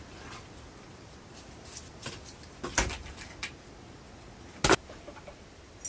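Wooden sticks knock and clatter close by.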